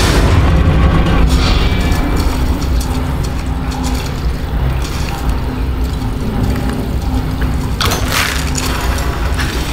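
A deep mechanical hum drones steadily.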